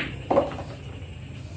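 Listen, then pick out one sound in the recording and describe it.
A cue strikes a billiard ball with a sharp click.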